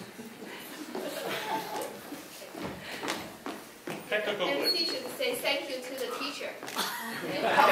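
A man speaks through a microphone in a large hall.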